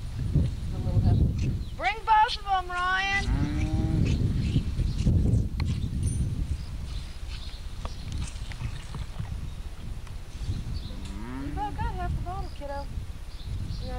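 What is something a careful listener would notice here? A calf sucks and slurps noisily from a bottle.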